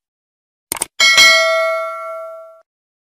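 A bell chimes brightly and rings out.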